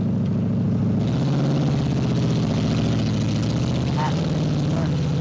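Mud and water splash under spinning tyres.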